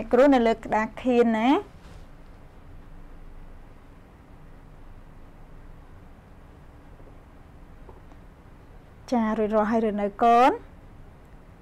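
A young woman speaks clearly and with animation into a close microphone, in short bursts with long pauses.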